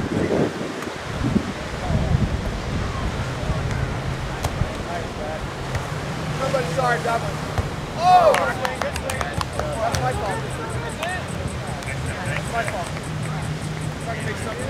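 Waves break on a shore steadily in the distance.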